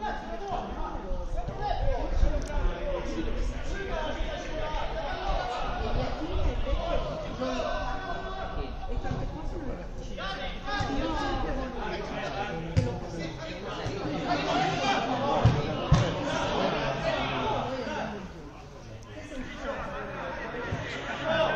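Nearby spectators talk over one another.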